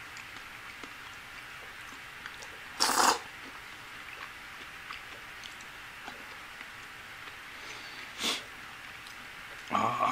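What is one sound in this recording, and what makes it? Chopsticks tap lightly against a bowl.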